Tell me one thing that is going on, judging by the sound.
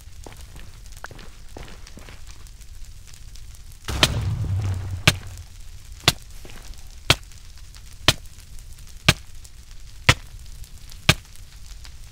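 Footsteps crunch steadily on rough stone.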